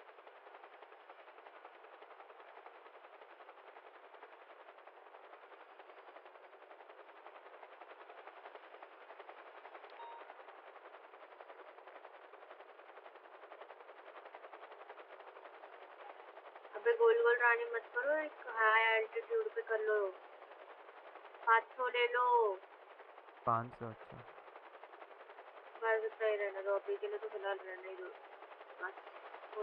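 A helicopter's rotor whirs steadily overhead.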